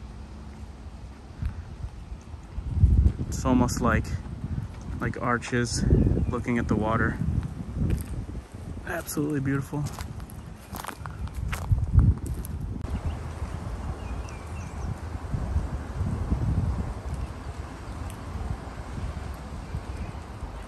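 Wind gusts across a microphone outdoors.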